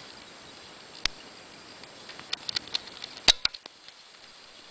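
A kitten rubs against the microphone with sharp bumps and rustles.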